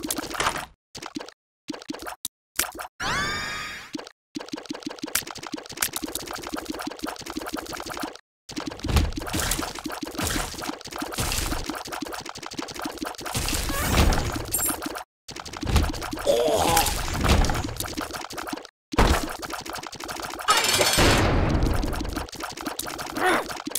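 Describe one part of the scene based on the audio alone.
Video game tears fire in rapid, repeated pops.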